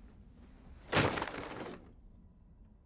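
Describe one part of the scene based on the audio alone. A backpack drops onto a wooden floor with a thud.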